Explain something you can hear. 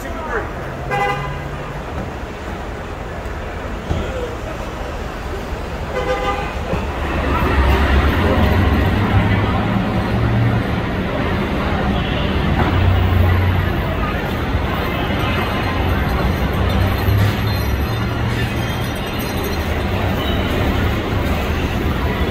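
An engine idles nearby.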